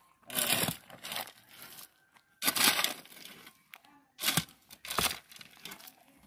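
A shovel scrapes and digs into dry, stony dirt.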